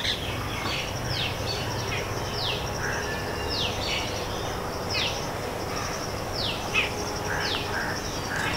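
A bird calls with repeated shrill, falling cries.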